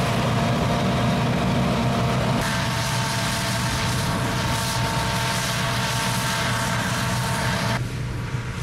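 A diesel combine harvester rumbles as it harvests grain.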